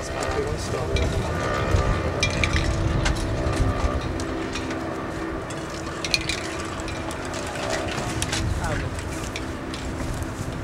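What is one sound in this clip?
Shoes scrape on a brick wall.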